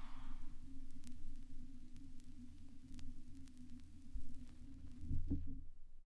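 A vinyl record crackles and pops softly.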